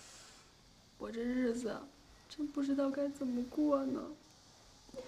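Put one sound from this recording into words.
A young woman sobs and weeps.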